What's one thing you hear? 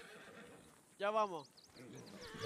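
A horse whinnies nearby.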